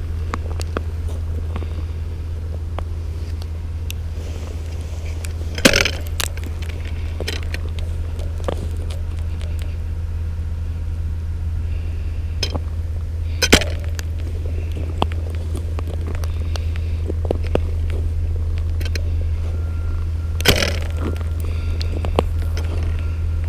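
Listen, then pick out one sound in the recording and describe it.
Boots crunch and scrape on ice.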